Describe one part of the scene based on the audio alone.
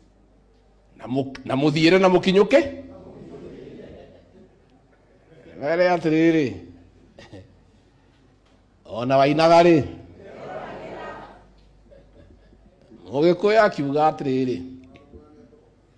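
A man speaks with animation through a microphone, his voice ringing in an echoing hall.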